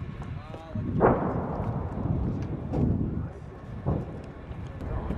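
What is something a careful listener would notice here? Explosions boom in the distance and rumble away.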